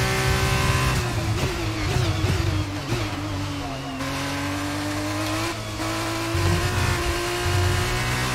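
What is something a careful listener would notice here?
A racing car engine slows down and burbles into a corner.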